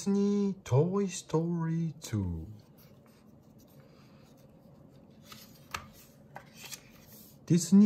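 Stiff book pages rustle softly as they are turned.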